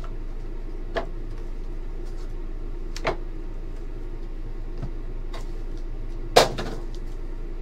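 Cardboard card packs tap and clack against each other.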